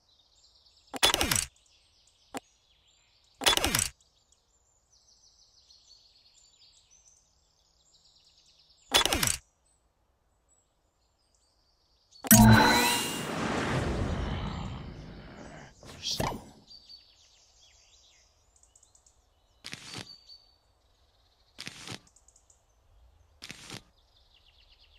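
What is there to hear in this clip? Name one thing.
Short electronic chimes ring out as menu items are picked.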